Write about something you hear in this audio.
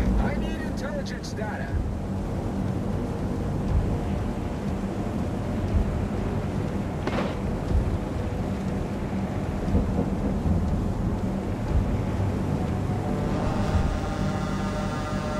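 A ship's engine rumbles low and steady.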